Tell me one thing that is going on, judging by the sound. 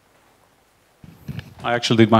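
Another man speaks loudly and close into a handheld microphone.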